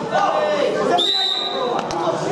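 A referee blows a short whistle blast.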